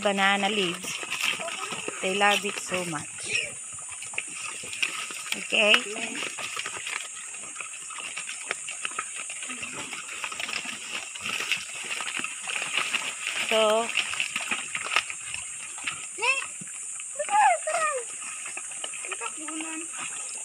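Pigs grunt and snuffle while eating leaves.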